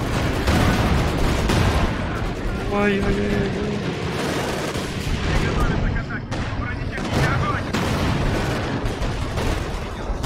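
Tank engines rumble low.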